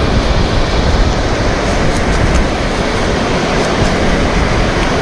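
Shallow surf washes over sand.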